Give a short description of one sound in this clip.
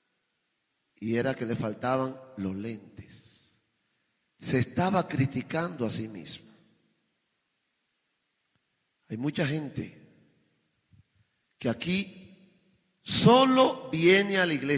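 A man preaches with animation through a microphone, in bursts with pauses between them.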